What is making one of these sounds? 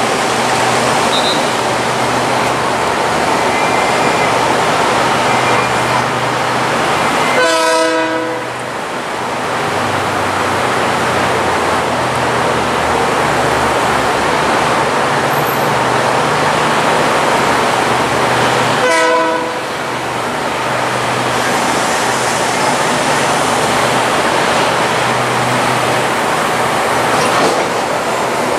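A diesel train engine rumbles steadily close by.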